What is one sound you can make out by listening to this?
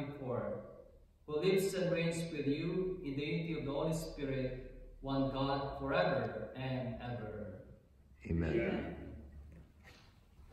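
A man speaks slowly into a microphone in an echoing room.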